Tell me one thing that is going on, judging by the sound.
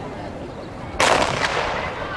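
A starting pistol fires once with a sharp crack outdoors.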